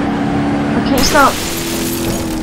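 A car slams into something with a loud crunching crash.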